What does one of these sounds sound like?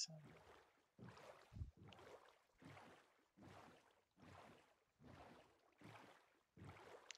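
Oars splash in water with a steady rhythm.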